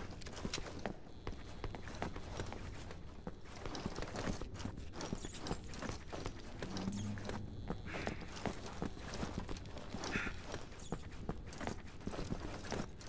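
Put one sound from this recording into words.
Boots run quickly over a hard floor.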